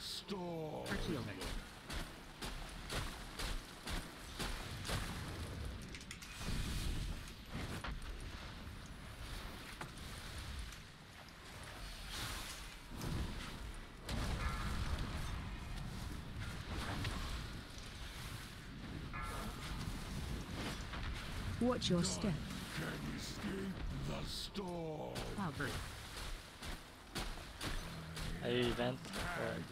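Magical effects whoosh and crackle.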